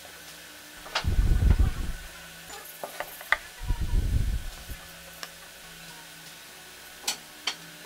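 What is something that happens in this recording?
Wooden boards knock and scrape against a wooden workbench.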